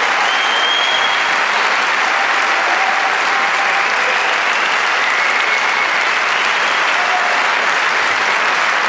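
A large audience claps loudly in an echoing hall.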